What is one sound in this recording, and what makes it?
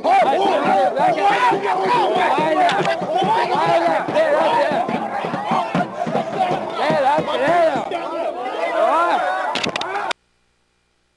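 A large crowd of men and women shouts and chants loudly, close by.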